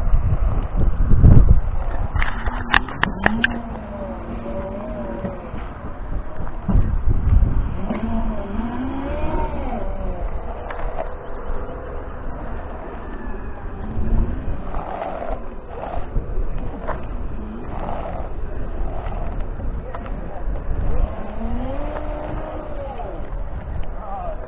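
A self-balancing scooter's motor whines, rising and falling in pitch as it moves.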